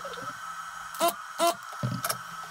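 A spring-loaded desoldering pump snaps.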